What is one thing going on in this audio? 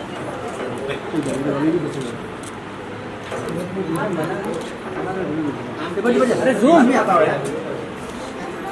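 A woman speaks warmly to children close by.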